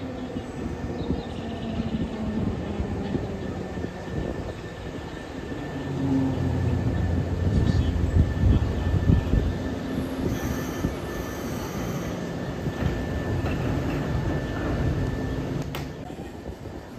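An electric train pulls into the station, its wheels rumbling on the rails as it slows down.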